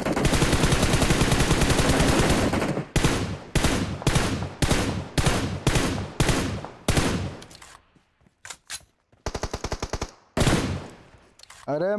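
Rapid gunfire rattles in bursts, then slows to single shots.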